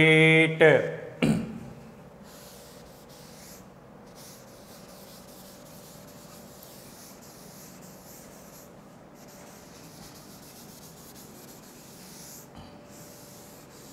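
A duster rubs across a board.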